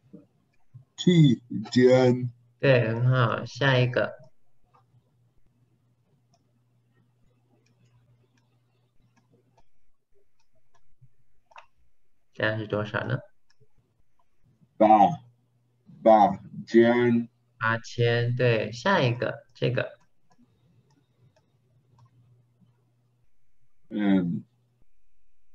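A man speaks calmly over an online call, teaching in short phrases.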